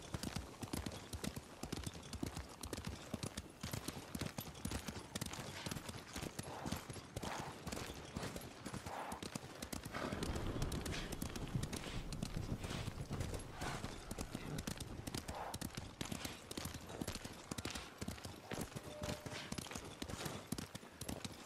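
Grass rustles as a horse gallops through it.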